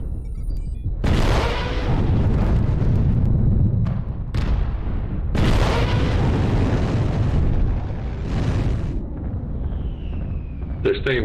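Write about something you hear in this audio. Heavy weapons fire with loud booms and a deep rumble.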